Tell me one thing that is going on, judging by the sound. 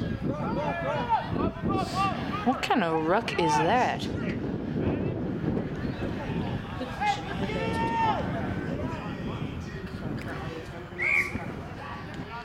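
Young men shout and call out to each other across an open field.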